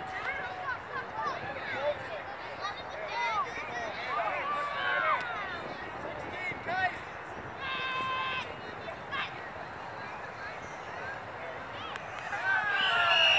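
Young players and spectators shout and cheer across an open field.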